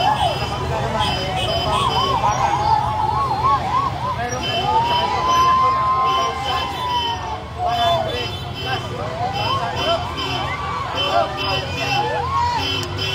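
Vehicle and motorcycle engines rumble slowly nearby.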